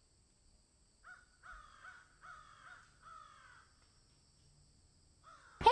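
A bird sings a series of clear, whistled chirps.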